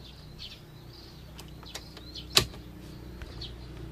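Keys jingle and click in an ignition.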